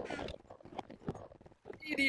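A wooden block breaks apart with a crunch.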